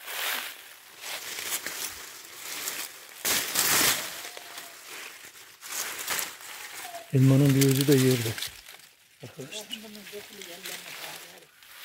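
Leafy plant stems rustle as a hand pushes through them.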